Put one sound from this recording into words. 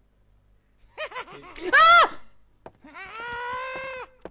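A young man shouts and exclaims loudly into a microphone.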